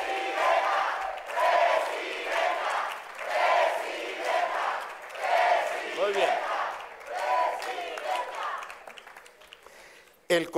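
A large crowd cheers and chants rhythmically.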